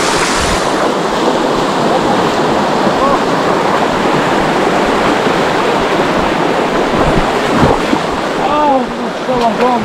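Feet splash through the water.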